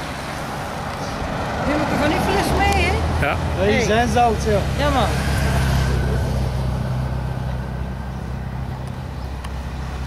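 A car engine rumbles as the car drives past.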